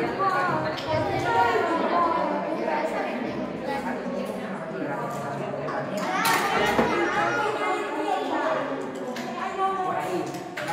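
Children chatter and talk over each other.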